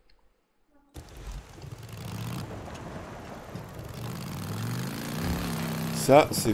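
A motorbike engine rumbles and revs.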